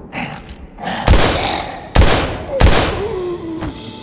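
Gunshots ring out sharply, one after another.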